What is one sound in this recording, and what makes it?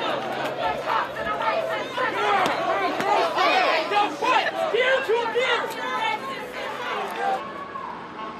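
A crowd of protesters shouts outdoors.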